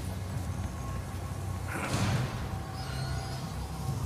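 A heavy metal gate creaks open.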